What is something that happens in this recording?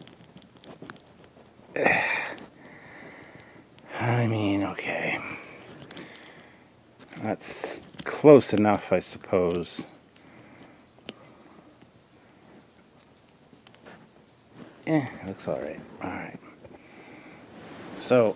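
Small plastic parts click softly as fingers handle them.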